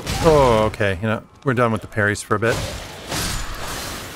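A sword slashes and strikes an enemy.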